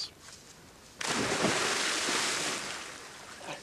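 A man splashes heavily into water.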